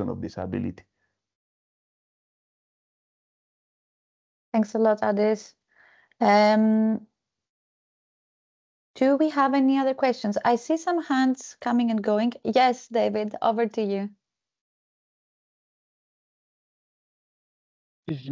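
A young woman speaks calmly over an online call, in short bursts with pauses.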